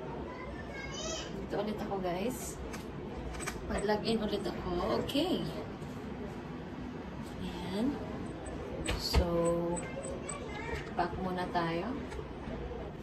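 A young woman speaks close by, calmly.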